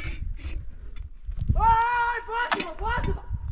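A metal pot clinks and scrapes on stony ground.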